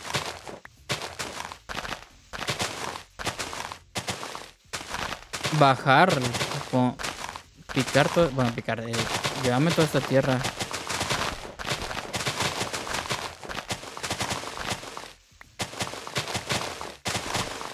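Grass blocks crunch and pop as they are broken in quick bursts.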